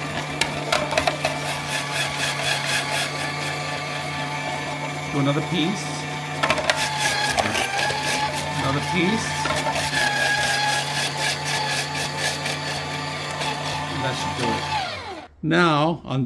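An electric grater motor whirs steadily as it shreds vegetables.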